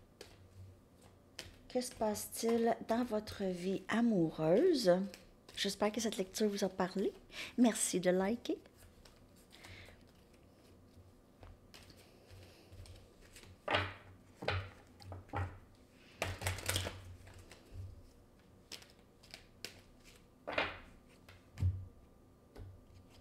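Playing cards shuffle and snap between a woman's hands.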